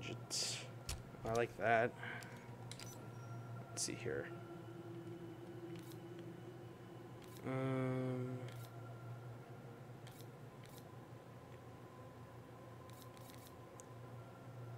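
Short soft clicks tick now and then as menu choices change.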